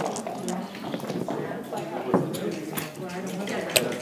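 Dice clatter onto a wooden board.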